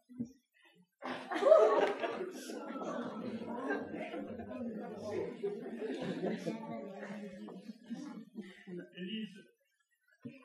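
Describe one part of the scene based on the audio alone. An audience murmurs and chatters together.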